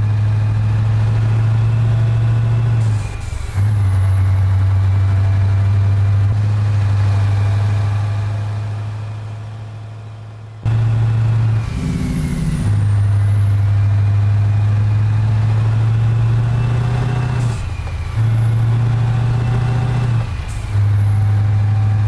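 A truck engine drones steadily, dipping briefly as the gears change.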